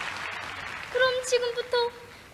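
Two young girls sing together into a microphone.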